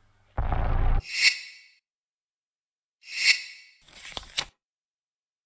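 Short electronic menu chimes sound.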